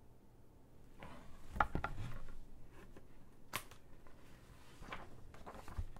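Book pages rustle as a woman turns them.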